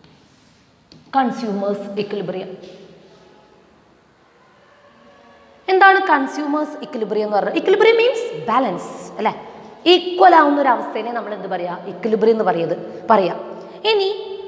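A woman speaks calmly and clearly into a clip-on microphone, close by.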